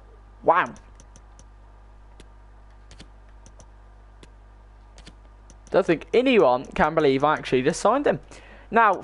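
Short soft menu clicks tick now and then.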